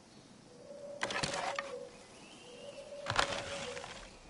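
An arrow is loosed from a bow with a sharp twang.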